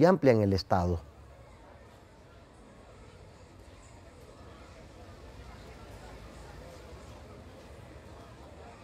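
A busy street crowd murmurs in the distance.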